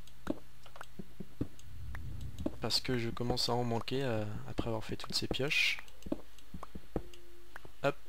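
A pickaxe taps and chips at stone blocks.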